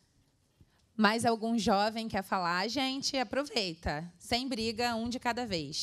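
A woman speaks through a microphone.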